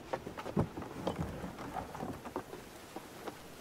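A chest lid creaks open.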